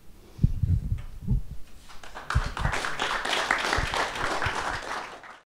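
A handheld microphone bumps and thumps as it is moved.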